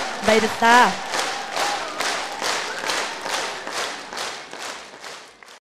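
A large crowd claps in a steady rhythm in a big hall, slowly fading.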